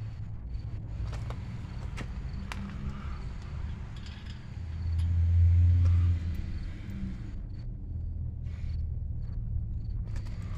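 Metal parts of a tricycle click and rattle as a man handles it.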